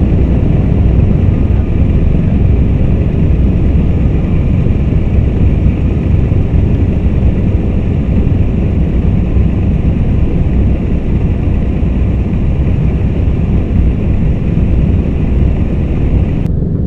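Jet engines rumble loudly and steadily as an aircraft taxis.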